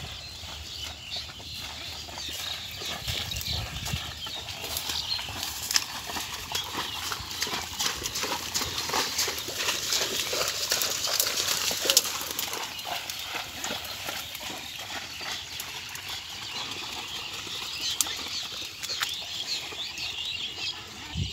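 Wooden cart wheels roll and creak through mud.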